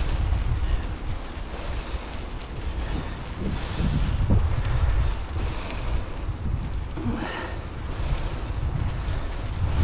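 Wind buffets the microphone outdoors in a steady low rumble.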